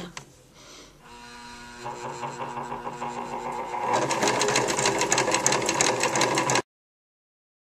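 A sewing machine motor whirs and stitches rapidly, speeding up.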